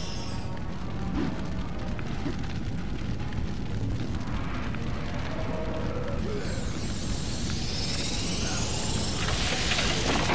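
Fires crackle steadily.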